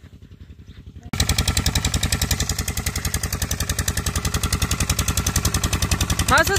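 A diesel water pump engine chugs steadily and rhythmically.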